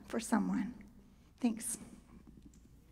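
A young woman speaks briefly into a microphone in a large echoing hall.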